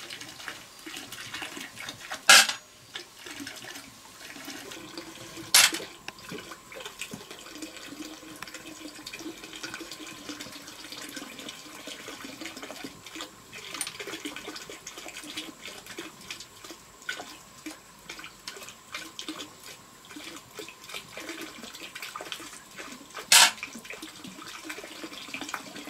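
Snail shells clatter and click against each other as they are handled.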